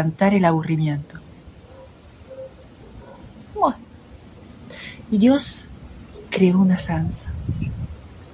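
A woman speaks expressively and close to a microphone, with pauses.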